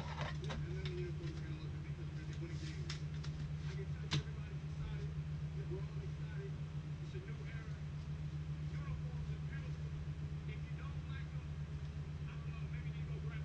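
Plastic card wrappers and cards rustle and tap as they are handled.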